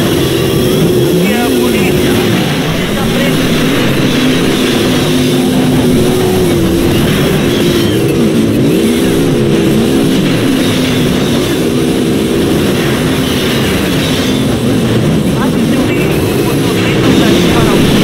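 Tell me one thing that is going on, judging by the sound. A car engine revs up and down loudly.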